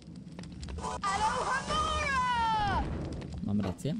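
A magic spell fires with a shimmering, falling whoosh.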